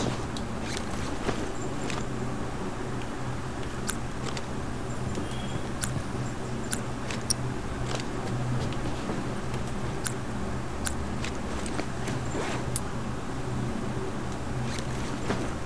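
Footsteps tread on a creaky wooden floor.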